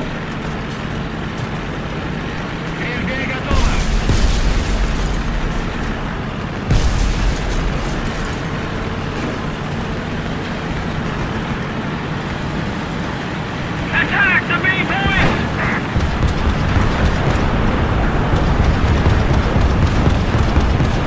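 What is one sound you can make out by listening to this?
Tank tracks clank and rattle over the ground.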